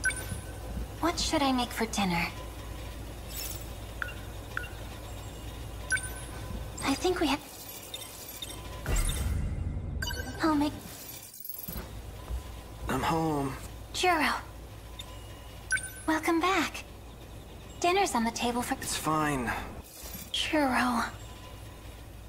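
A young woman speaks softly in short phrases.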